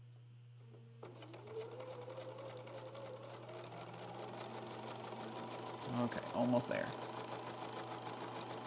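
A sewing machine starts up and stitches rapidly, speeding up as it runs.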